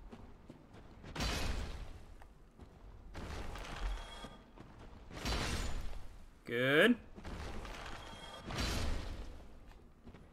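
A sword swishes through the air and strikes.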